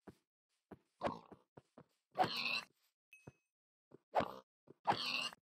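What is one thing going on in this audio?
Blows thump against a pig.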